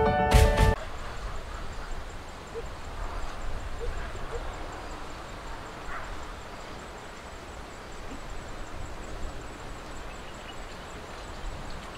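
Footsteps crunch on gravel outdoors.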